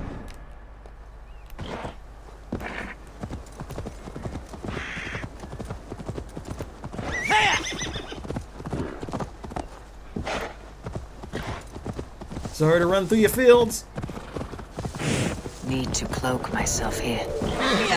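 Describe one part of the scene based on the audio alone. Horse hooves clop steadily on soft ground.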